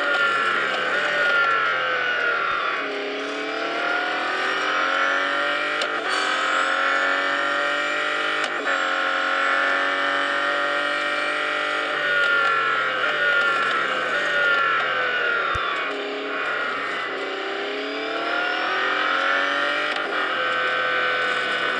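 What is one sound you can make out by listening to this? A racing car engine roars at high revs, rising and falling in pitch as the gears shift.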